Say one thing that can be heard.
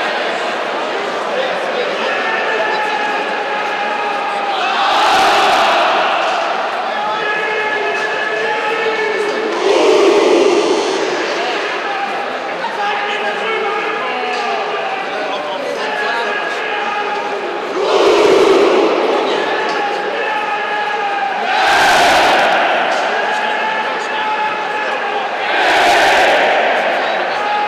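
A large crowd of fans sings and chants together in a big echoing arena.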